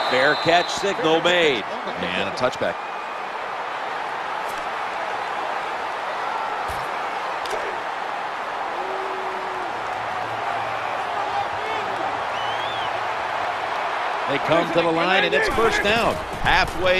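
A large stadium crowd roars steadily in the distance.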